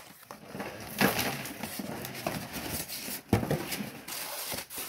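Foam packing rubs and squeaks against a cardboard box.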